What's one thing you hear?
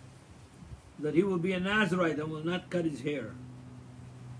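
An elderly man speaks briefly and calmly, close to the microphone.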